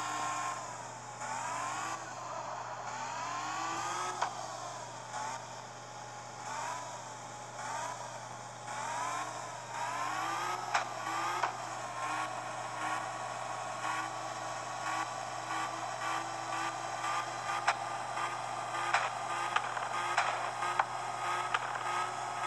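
A car engine revs up repeatedly, rising in pitch through the gears, then holds a steady high drone.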